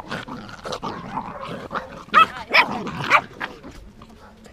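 Puppies growl and yelp as they play-fight up close.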